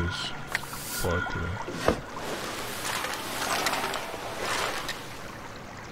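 A cloth sack rustles as it is opened.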